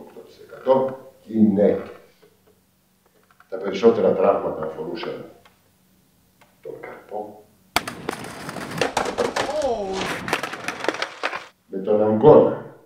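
An elderly man speaks calmly, as if lecturing.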